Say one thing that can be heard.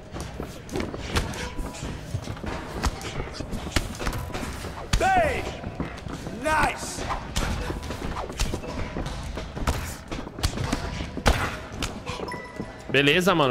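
Punches thud and smack in quick bursts.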